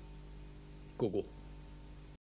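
A young woman speaks softly and briefly.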